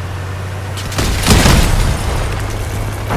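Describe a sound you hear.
Rapid cannon fire bursts out.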